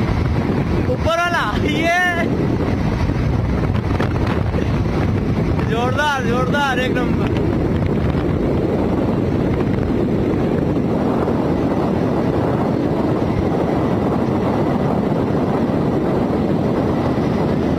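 Wind rushes and rumbles loudly past.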